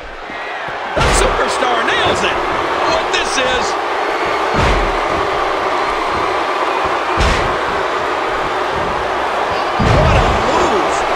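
A wrestler slams onto a wrestling ring mat with a heavy thud.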